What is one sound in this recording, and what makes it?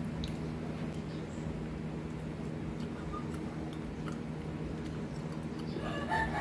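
A woman chews food noisily.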